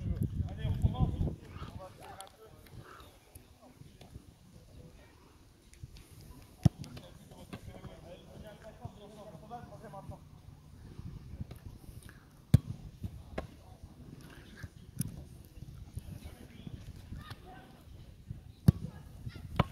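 A football is kicked with a sharp thud, several times.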